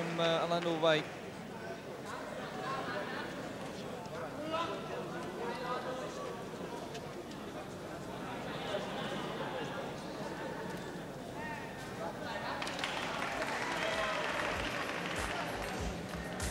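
A crowd murmurs in a large hall.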